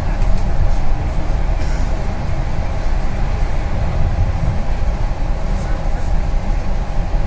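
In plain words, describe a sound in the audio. Tyres roll on the road with a steady hiss.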